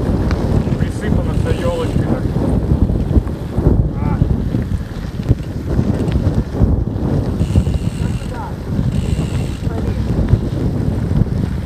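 Bicycle tyres crunch over a sandy gravel track.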